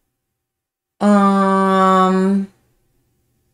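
A woman lets out a long, drawn-out exclamation of surprise.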